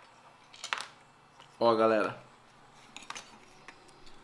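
Small metal parts click and clatter as they are handled.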